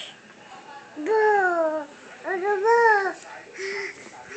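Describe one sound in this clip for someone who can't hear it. A toddler squeals with high, rising and falling cries close by.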